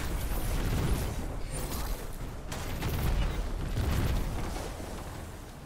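A man talks through a microphone.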